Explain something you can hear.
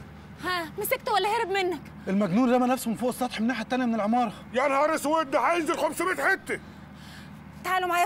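A younger man speaks firmly nearby.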